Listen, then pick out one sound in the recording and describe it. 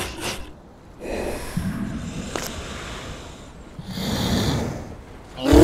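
A polar bear sniffs deeply.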